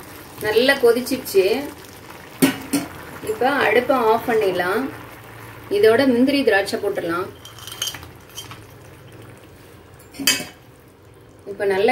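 Syrup bubbles and simmers in a pan.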